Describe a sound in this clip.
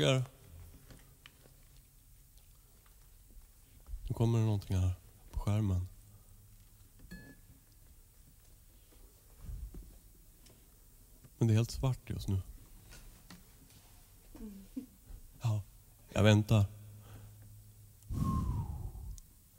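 A middle-aged man speaks close into a microphone in short bursts, with pauses between.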